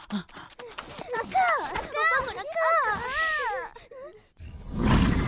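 A young boy shouts urgently and close by.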